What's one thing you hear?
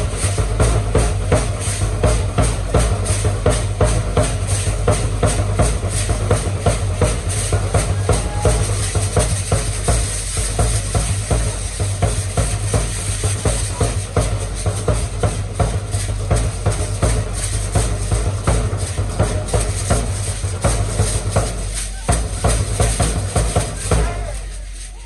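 Dancers' ankle rattles shake in a steady rhythm.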